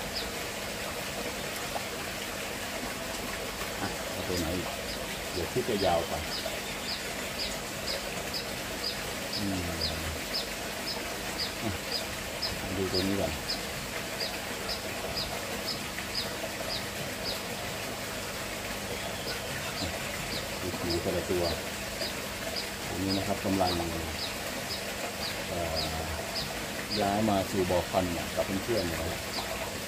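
Water splashes and swirls as a net sweeps through it.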